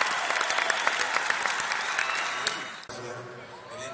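A large crowd cheers and claps loudly in a big arena.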